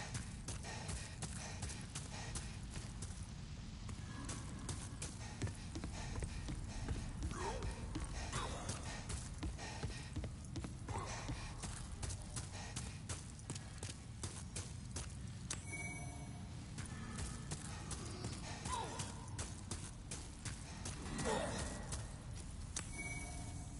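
Footsteps crunch quickly over rubble and wooden boards.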